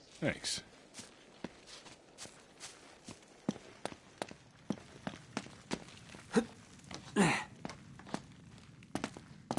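Footsteps thud on stone stairs.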